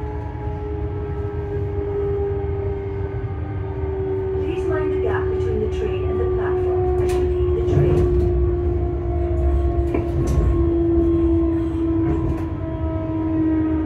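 A train rumbles and hums steadily along the track.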